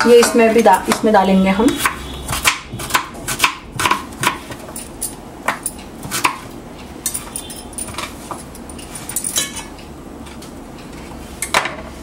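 A knife taps on a cutting board while chopping.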